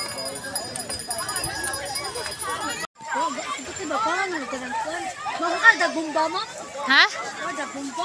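Children shout and play in shallow water.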